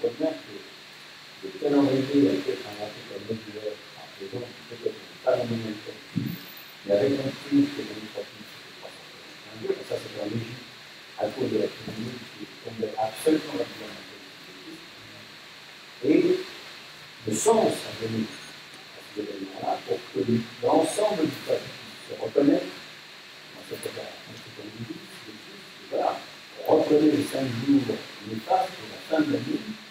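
A woman speaks calmly into a microphone in a room with a slight echo.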